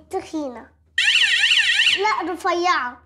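An alarm warbles loudly.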